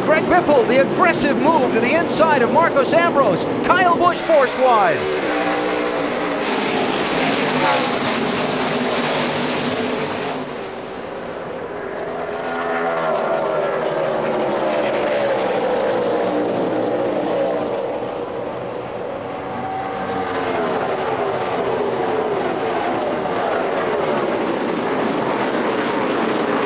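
Race car engines roar and whine as a pack of cars speeds past.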